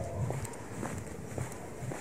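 Shoes step on pavement.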